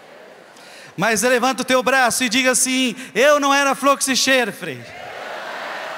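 A man sings out through a microphone.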